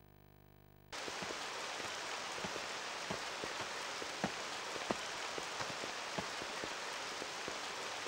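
Footsteps fall steadily.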